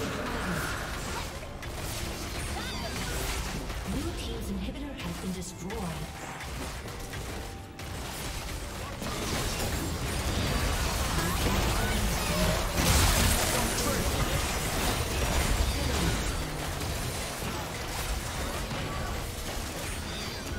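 Video game combat sound effects of spells, impacts and explosions clash.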